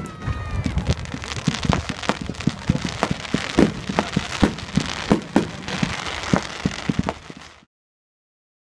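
Fireworks crackle and fizz overhead.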